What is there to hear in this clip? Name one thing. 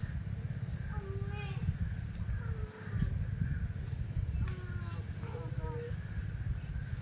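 Young children talk softly at a distance.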